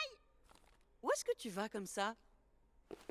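An elderly woman answers calmly, close by.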